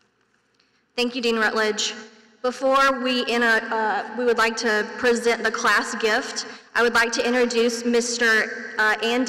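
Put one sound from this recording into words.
A young woman speaks calmly into a microphone over a loudspeaker system.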